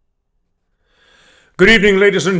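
A middle-aged man speaks warmly over an online call.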